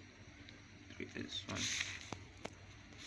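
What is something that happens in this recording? A sheet of paper rustles as it is slid along.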